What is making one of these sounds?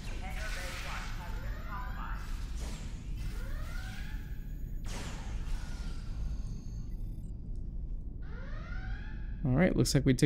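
Laser guns fire in quick, sweeping zaps.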